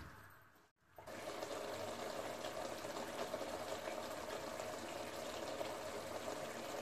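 Food bubbles and simmers steadily in a pot.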